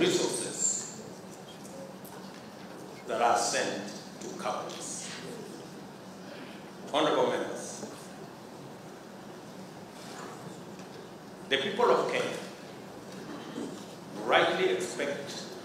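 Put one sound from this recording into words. A man speaks slowly and formally into a microphone, in a large echoing hall.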